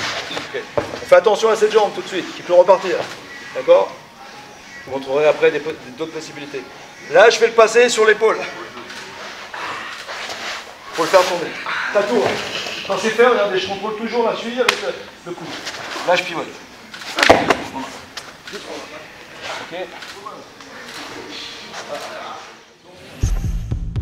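An older man speaks with animation in a large echoing hall.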